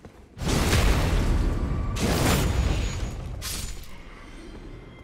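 Metal weapons clash and slash loudly in a fight.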